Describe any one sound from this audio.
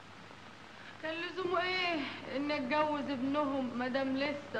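A woman sings loudly and with feeling.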